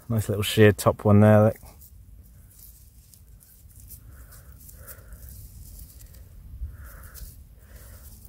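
A gloved hand rubs dirt off a small glass bottle.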